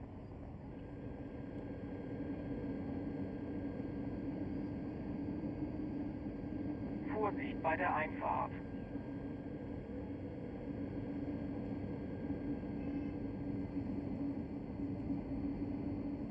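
A stopped electric train hums steadily.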